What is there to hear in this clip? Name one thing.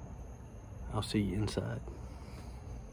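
A young man speaks briefly and close by.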